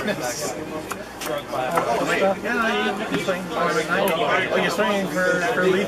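Playing cards slap softly onto a table.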